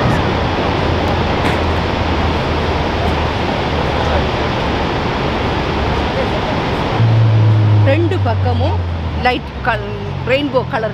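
A huge waterfall roars steadily outdoors.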